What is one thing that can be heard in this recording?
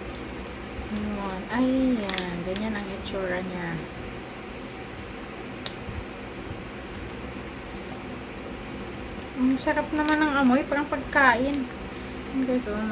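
A young woman speaks quietly and haltingly, close to a microphone.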